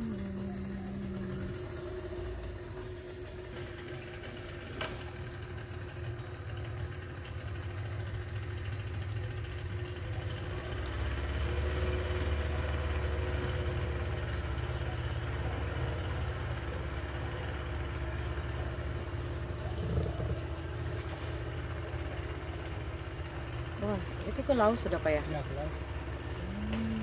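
A boat motor hums low and steady.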